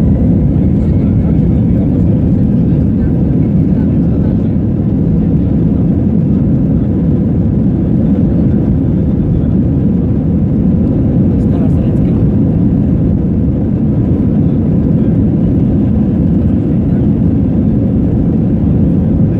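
Jet engines roar loudly and steadily as a plane speeds along a runway.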